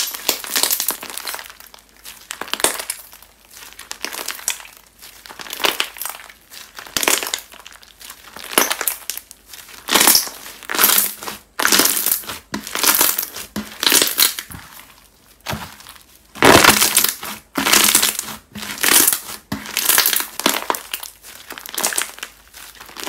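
Small beads in slime pop and click under pressing fingers.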